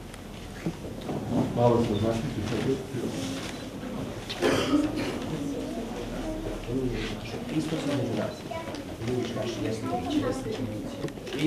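A man chants in a steady singing voice nearby.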